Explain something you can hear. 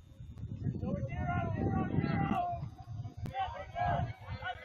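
Young players shout to each other across an open field in the distance.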